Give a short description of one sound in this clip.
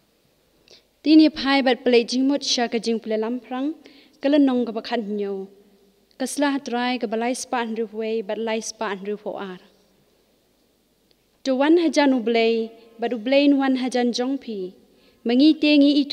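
A young woman speaks calmly into a microphone, in short phrases with pauses.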